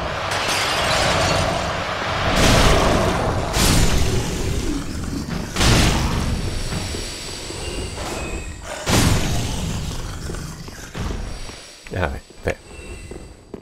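Heavy weapon blows strike with loud, booming whooshes.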